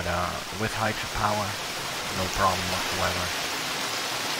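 A swimmer splashes through water.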